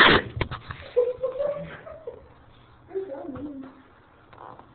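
A cat meows nearby.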